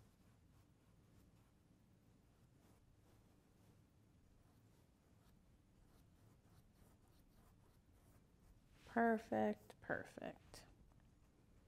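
A brush strokes softly across a canvas.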